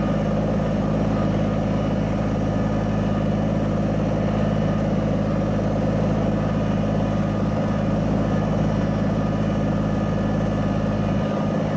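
A tractor's diesel engine runs with a steady, throbbing rumble close by.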